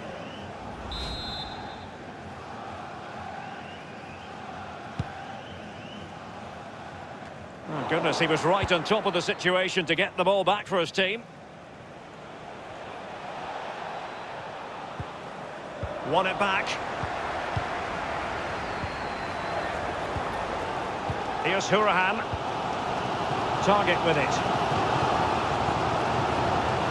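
A stadium crowd murmurs and cheers, growing louder over time.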